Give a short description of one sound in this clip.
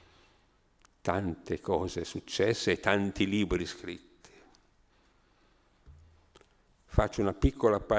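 An elderly man speaks calmly and thoughtfully into a close microphone, with pauses.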